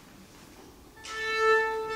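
A violin sounds a long steady tuning note.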